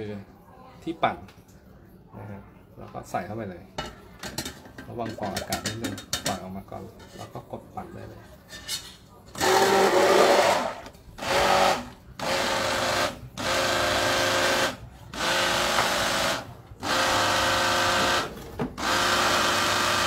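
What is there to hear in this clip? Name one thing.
A metal blender head knocks against a metal pot.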